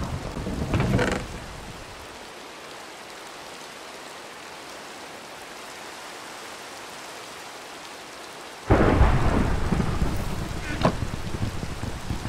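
A wooden chest creaks open and shut.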